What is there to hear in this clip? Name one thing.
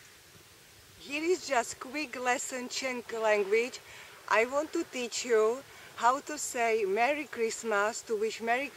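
A young woman speaks cheerfully and close by.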